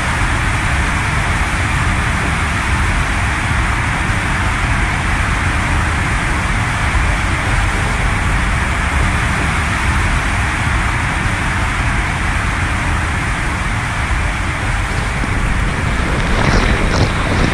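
Water rushes and splashes down an enclosed slide tube, with a hollow echo.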